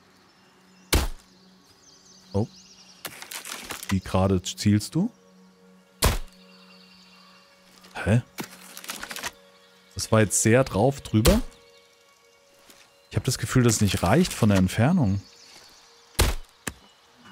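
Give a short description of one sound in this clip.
A crossbow fires with a sharp snap, several times.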